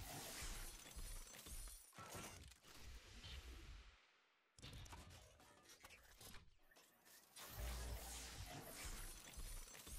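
Electric sparks crackle and zap.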